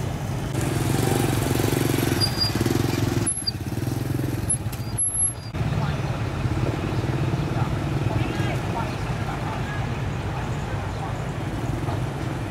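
Truck engines idle and rumble in heavy traffic.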